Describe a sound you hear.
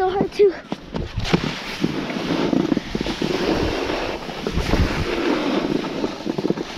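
A snowboard scrapes and hisses over packed snow.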